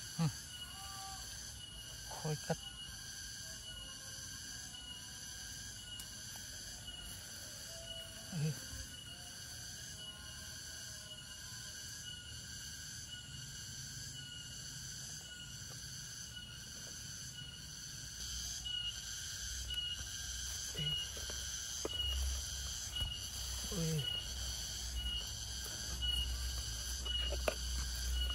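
Crickets chirp in a fast, steady rhythm.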